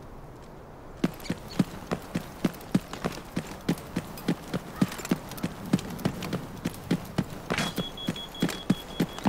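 Footsteps patter quickly on hard pavement.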